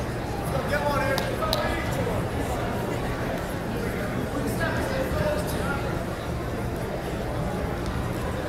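Wrestling shoes squeak on the mat.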